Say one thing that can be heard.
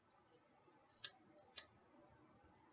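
A lighter clicks and sparks.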